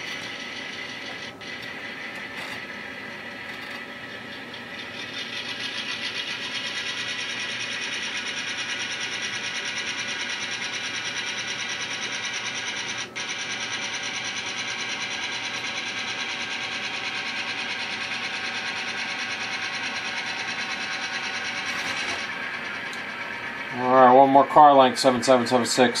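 A small N-scale model diesel locomotive hums as it runs along the track.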